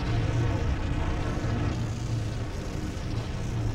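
Electric bolts crackle and hum with a deep, steady drone.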